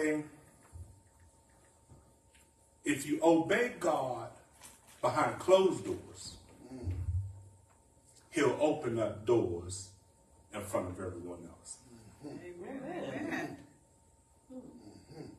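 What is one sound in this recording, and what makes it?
A man preaches through a microphone with animation, in bursts between pauses.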